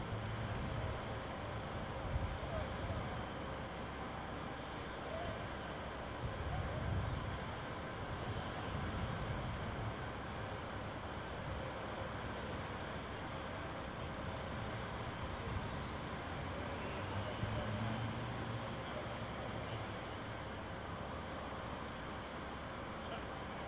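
A deep, rumbling roar of a collapsed building's debris settling goes on and swells now and then.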